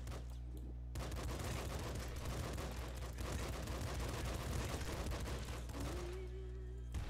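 Rapid electronic gunfire crackles in a video game.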